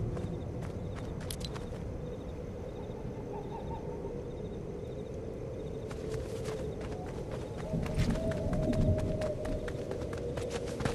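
Quick footsteps patter through grass.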